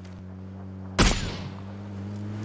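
A rifle shot cracks loudly and echoes.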